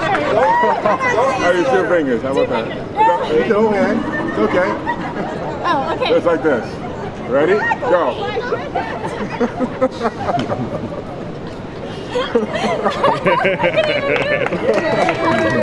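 A young woman laughs and squeals close by.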